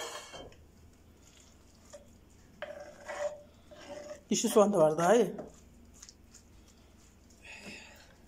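Food is scraped off a wooden board into a bowl.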